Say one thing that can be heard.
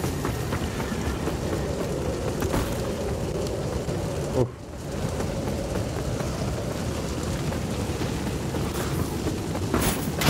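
Fire roars and crackles steadily all around.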